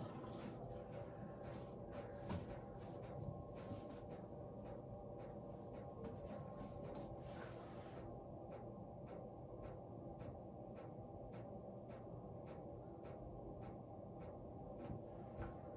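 A young woman breathes softly close by.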